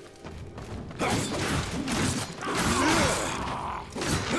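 A heavy weapon swings and strikes with loud clashes.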